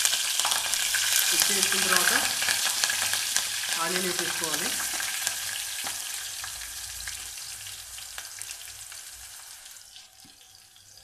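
Water bubbles and hisses at a boil.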